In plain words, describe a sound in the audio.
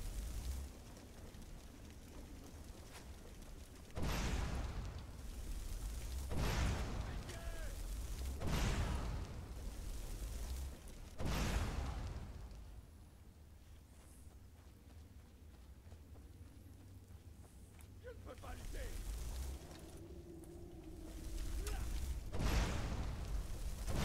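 Fire spells whoosh and roar in bursts.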